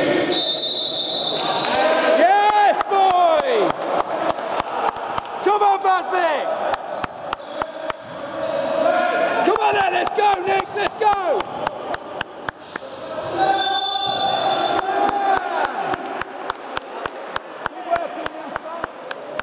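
A basketball bounces repeatedly on the court.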